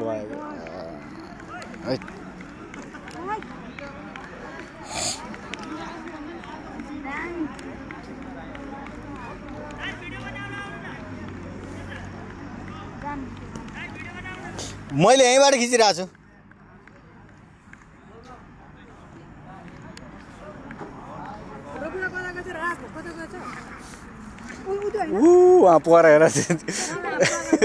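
A group of men talk and call out to each other outdoors.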